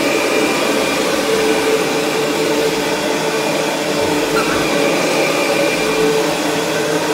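A vacuum cleaner head rolls and brushes over a wooden floor.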